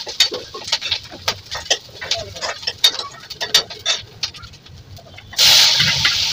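A knife taps and scrapes on a cutting board.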